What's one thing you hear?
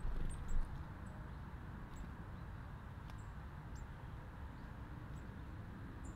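A small bird chirps nearby.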